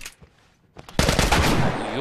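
A revolver fires a shot.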